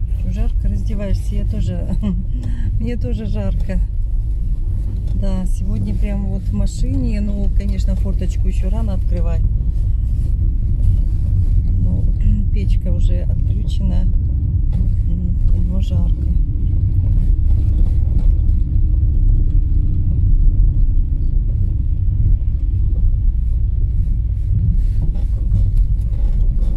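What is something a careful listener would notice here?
A car engine rumbles low and steady while driving.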